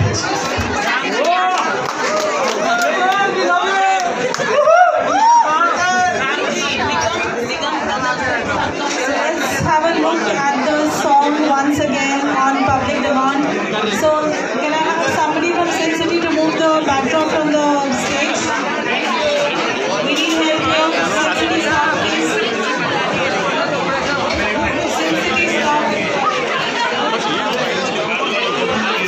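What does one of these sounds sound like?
A crowd chatters loudly all around.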